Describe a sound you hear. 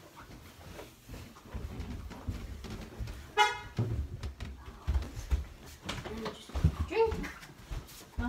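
Footsteps thud down wooden stairs.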